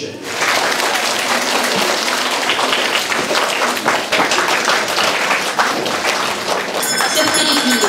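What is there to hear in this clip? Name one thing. A crowd applauds in a hall.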